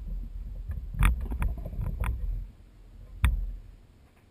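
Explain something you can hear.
Small metal tools click and tap.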